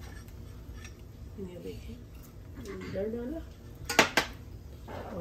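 A spoon scrapes and clinks against a glass bowl.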